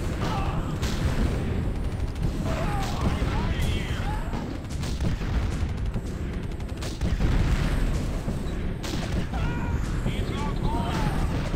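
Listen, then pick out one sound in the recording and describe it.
Tank cannons fire in short bursts.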